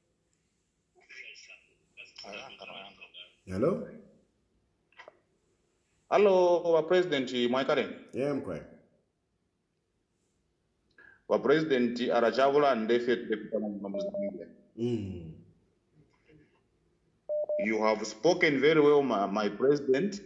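A man speaks calmly and close up, in bursts with pauses.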